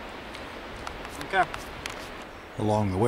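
A young man speaks briefly nearby.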